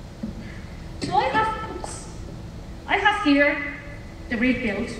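A woman talks into a microphone in a large echoing hall.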